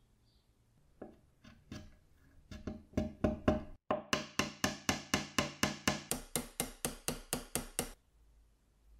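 A mallet taps repeatedly on a metal tube.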